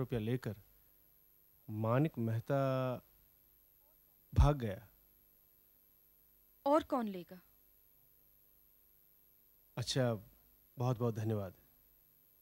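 A man speaks in short, halting phrases close by.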